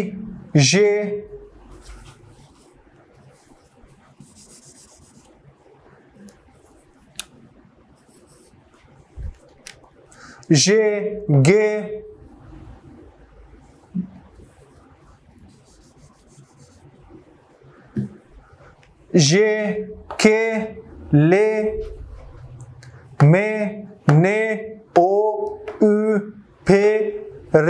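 A young man speaks clearly and slowly, pronouncing single sounds one at a time, with pauses in between.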